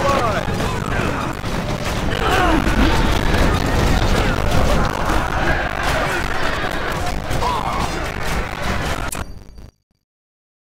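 Weapons clash and clang in a busy battle.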